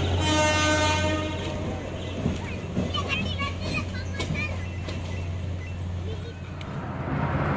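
A train's wheels rumble on the rails.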